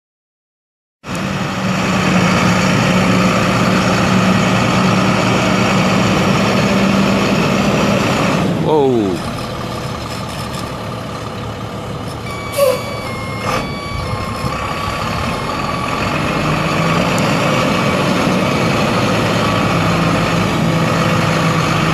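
A truck engine rumbles steadily nearby as the truck drives slowly.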